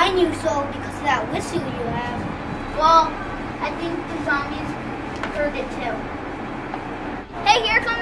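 Two young boys talk with each other up close.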